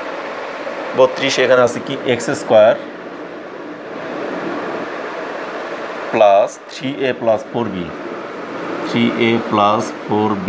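A man speaks calmly and clearly nearby, pausing between phrases.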